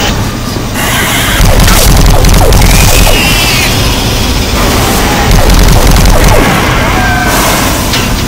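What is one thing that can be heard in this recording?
A gun fires bursts of buzzing energy shots.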